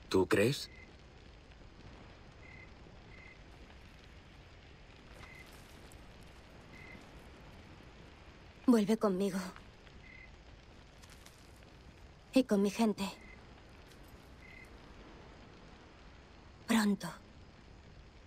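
A young woman speaks briefly in short, calm phrases, close by.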